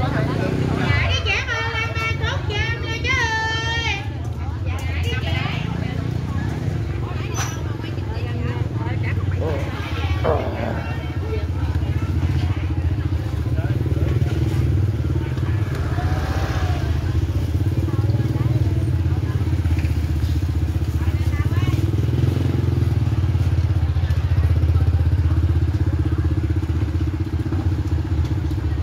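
Motorbike engines putter past close by.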